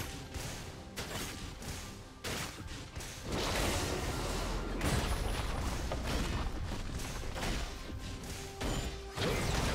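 Weapons clash and magic spells burst in a fast battle.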